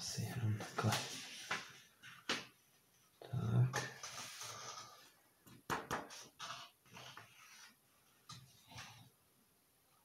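A sheet of paper rustles as it is lifted and handled.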